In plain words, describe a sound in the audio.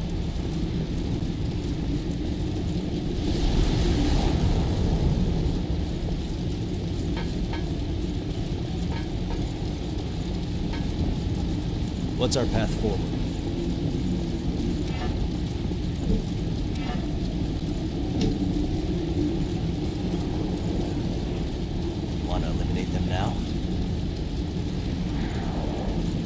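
Footsteps crunch over stone.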